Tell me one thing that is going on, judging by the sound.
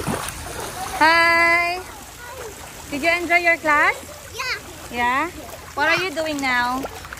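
A young child speaks excitedly up close.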